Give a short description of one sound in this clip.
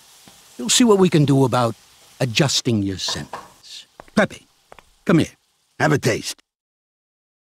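A man speaks calmly and closely, in short phrases.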